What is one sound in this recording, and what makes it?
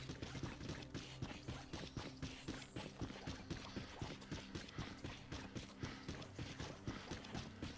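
Quick footsteps run on a hard road.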